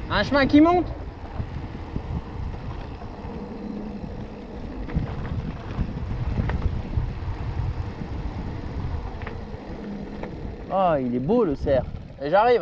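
Bicycle tyres roll and crunch over a gravel path.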